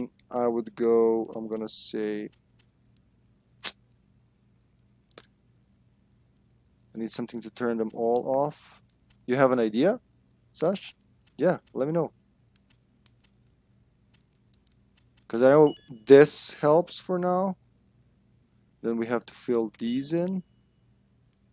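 A young man talks calmly into a headset microphone, close by.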